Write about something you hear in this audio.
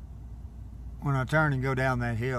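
A vehicle engine revs up loudly.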